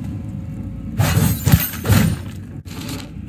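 Swords swish and clash in quick slashes.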